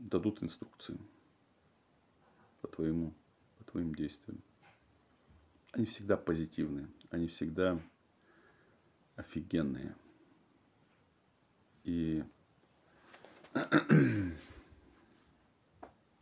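A man speaks calmly and close, in short phrases with pauses.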